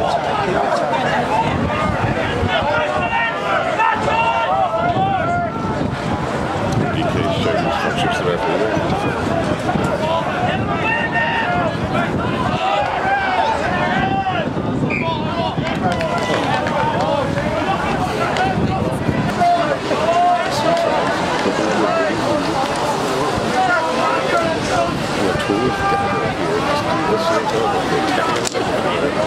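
A crowd of spectators shouts and cheers loudly nearby, outdoors.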